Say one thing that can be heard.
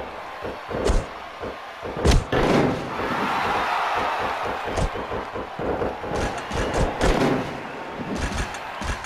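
Heavy blows land with loud thuds.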